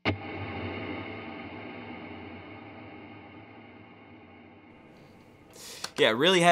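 An electric guitar strums a chord that rings out and slowly fades.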